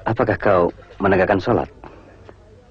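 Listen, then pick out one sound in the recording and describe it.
An adult man speaks with emotion.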